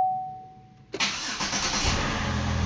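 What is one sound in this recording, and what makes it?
A car engine starts and idles with a steady rumble.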